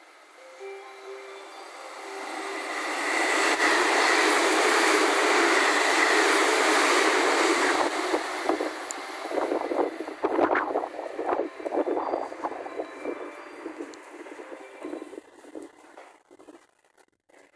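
A train rumbles and clatters along the tracks as it passes close by and slowly fades into the distance.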